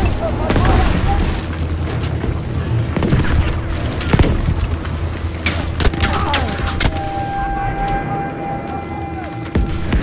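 Gunshots crack sharply, some close and some farther off.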